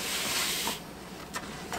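Sugar pours into a pot with a soft hiss.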